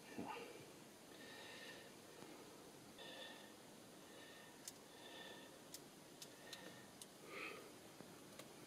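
Plastic rustles and crinkles softly as a man handles a small part close by.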